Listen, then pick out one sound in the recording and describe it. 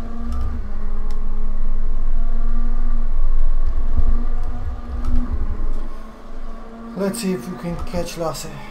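A race car engine drones at high revs.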